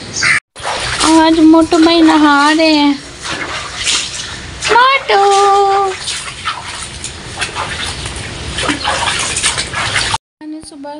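Water splashes as a dog is bathed in a tub.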